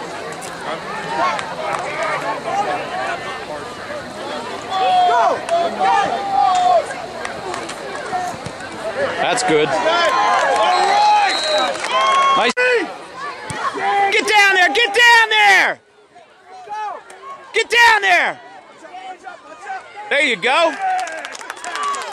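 A crowd of spectators cheers and shouts excitedly close by.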